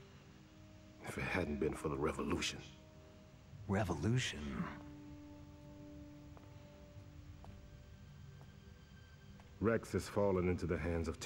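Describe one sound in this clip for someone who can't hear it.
A middle-aged man speaks quietly and gravely.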